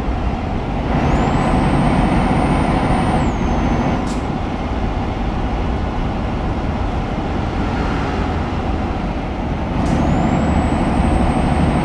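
A truck engine hums steadily as the truck drives along a road.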